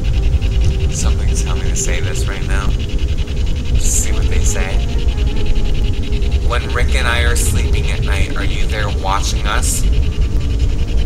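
A young man whispers close by.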